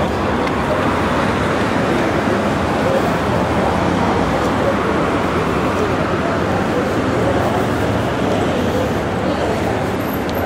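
River water laps steadily against a stone embankment.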